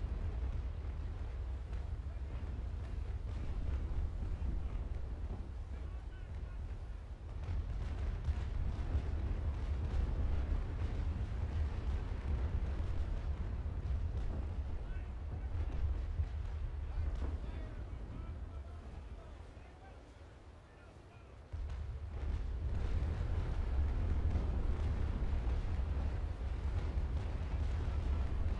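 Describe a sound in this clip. Wind rushes and waves wash over open water.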